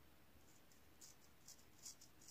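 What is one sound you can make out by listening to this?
A razor scrapes softly over stubble.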